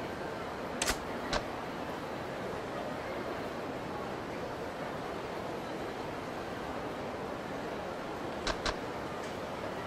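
A game menu cursor clicks as the selection moves.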